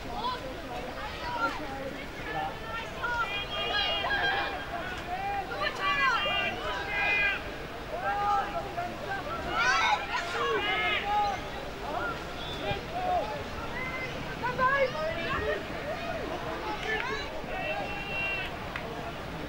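Young players and spectators shout and call out across an open field outdoors.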